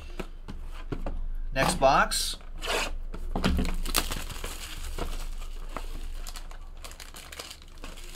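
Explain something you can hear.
Cardboard scrapes and slides as a box is opened.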